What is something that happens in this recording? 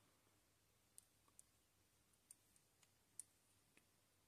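Small plastic parts click softly as they are pressed together.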